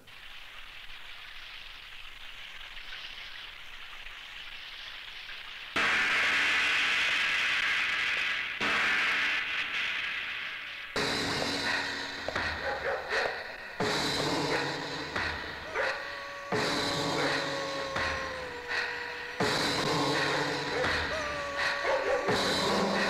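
Water from a shower splashes steadily.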